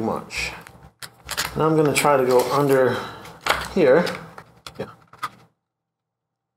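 A middle-aged man talks calmly into a microphone.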